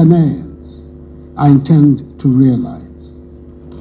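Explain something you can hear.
An elderly man speaks slowly and firmly over a microphone.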